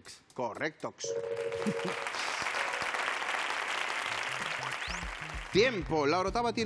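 A group of people applauds.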